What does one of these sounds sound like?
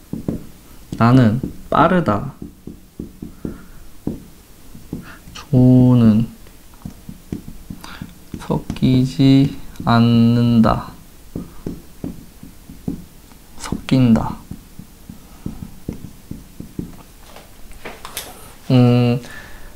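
A young man speaks slowly and clearly in short phrases, close by.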